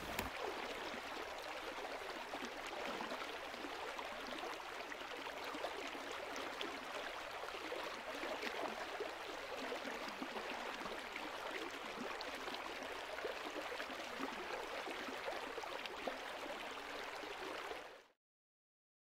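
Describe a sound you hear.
A river rushes loudly over rocks.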